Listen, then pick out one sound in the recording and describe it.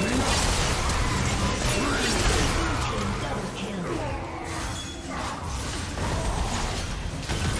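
Spell blasts and combat effects crackle and boom in a video game.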